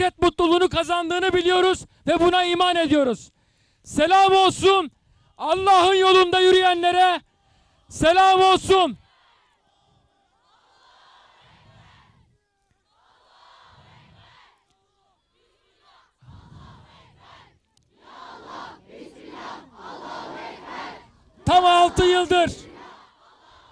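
A large crowd chants loudly in unison outdoors.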